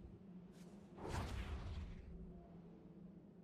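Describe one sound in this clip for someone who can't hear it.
A magical whoosh sweeps past with a shimmering tail.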